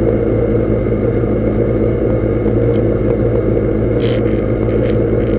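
A race car engine drones loudly and steadily from inside the cabin.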